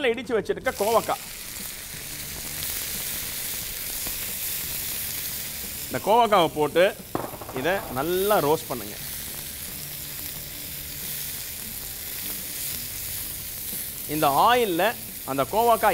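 Vegetables sizzle and hiss in a hot pan.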